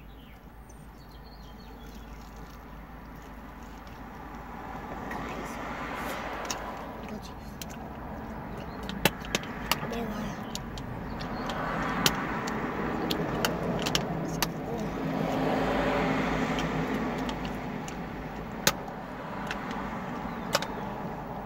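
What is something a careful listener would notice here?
A young woman bites and chews crispy fried food close to the microphone.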